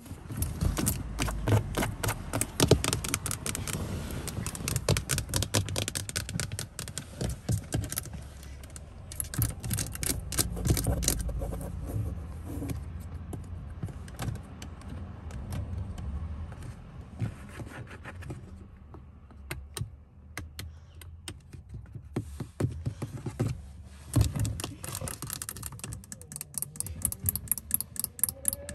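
Long fingernails tap and click rapidly on hard plastic, close up.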